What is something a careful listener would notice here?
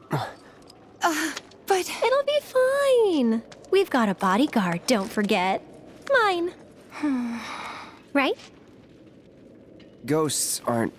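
A second young woman speaks cheerfully and brightly.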